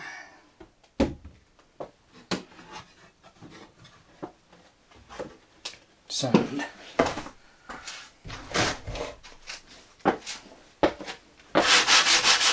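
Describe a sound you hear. Objects knock and clatter on wooden shelves.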